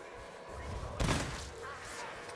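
A gun fires a single loud blast.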